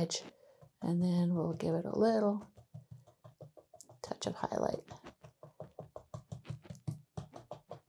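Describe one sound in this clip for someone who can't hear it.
A paintbrush dabs and taps quickly against a canvas.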